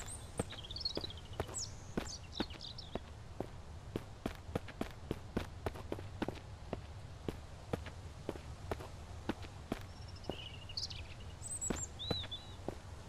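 Footsteps crunch steadily over dirt and dry leaves.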